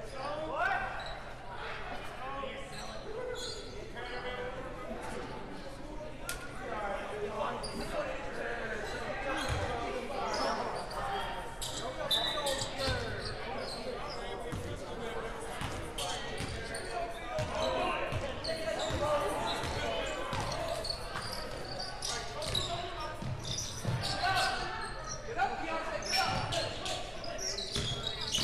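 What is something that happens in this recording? Spectators in the stands chatter and call out.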